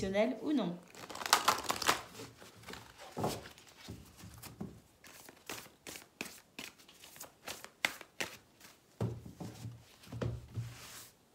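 Cards are shuffled, clicking and flapping quickly.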